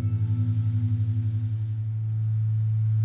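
An electric guitar plays chords through an amplifier.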